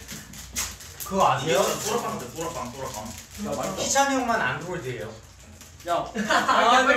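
Young men talk and laugh together close by.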